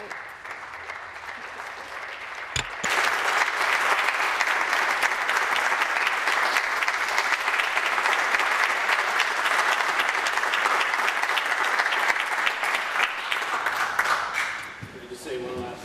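A crowd applauds loudly in a large hall.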